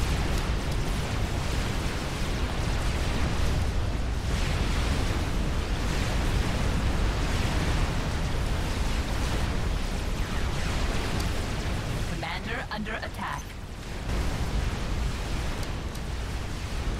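Explosions rumble and weapons fire crackle in a large battle.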